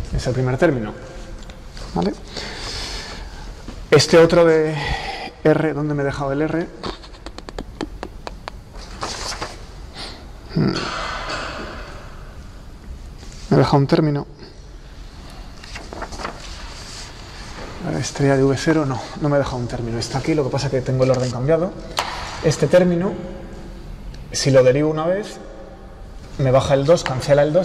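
A man lectures calmly in a slightly echoing room.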